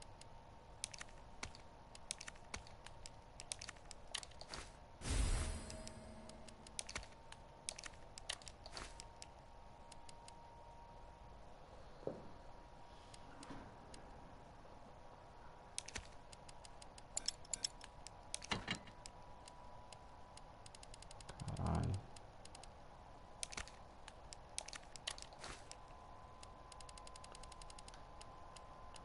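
Short soft clicks tick as a menu selection moves up and down.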